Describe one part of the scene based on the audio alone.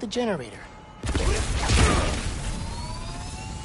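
An electric charge bursts with a loud crackling zap.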